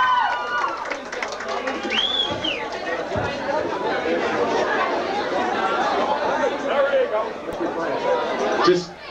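A crowd of young people chatters and shouts loudly in an echoing room.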